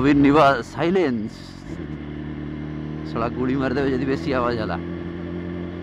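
A motorcycle engine revs up and down sharply several times.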